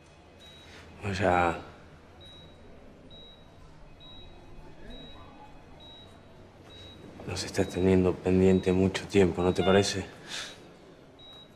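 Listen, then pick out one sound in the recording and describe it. A young man speaks softly and closely.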